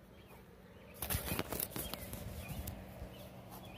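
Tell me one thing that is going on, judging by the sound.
Fingers rustle and bump against a phone close up.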